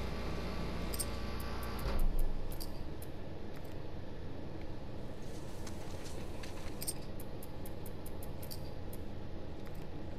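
Menu selection clicks sound in short sharp ticks.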